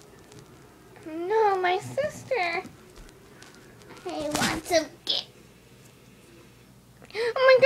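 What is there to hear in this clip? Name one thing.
A puppy whines and yelps close by.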